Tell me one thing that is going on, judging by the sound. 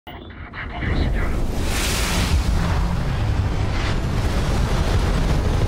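A spaceship's engines roar with a deep, steady rumble.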